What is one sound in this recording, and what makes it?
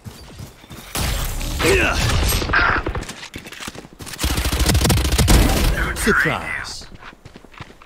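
A rifle fires in rapid bursts.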